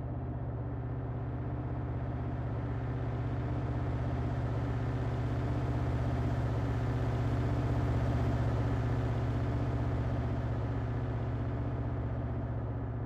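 A diesel locomotive engine drones loudly and swells as it passes.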